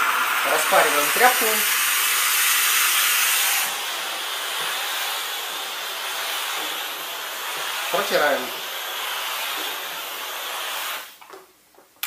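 A steam cleaner hisses steadily.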